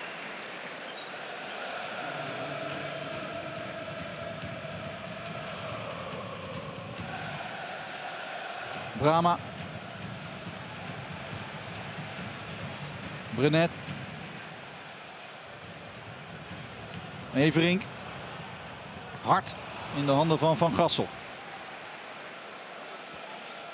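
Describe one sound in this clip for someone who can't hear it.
A large stadium crowd murmurs and calls out.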